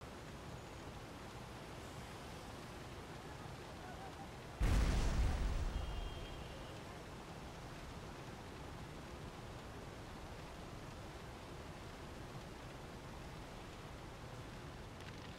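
Flames crackle and roar steadily.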